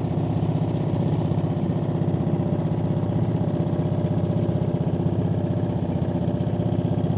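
A boat engine chugs steadily and fast close by.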